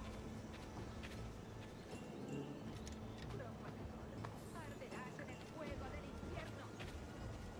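Footsteps pad softly over grass.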